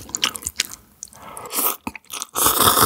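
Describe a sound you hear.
A man slurps noodles loudly close to a microphone.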